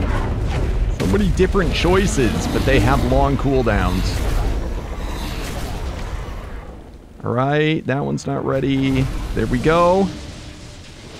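A huge dragon roars and screeches.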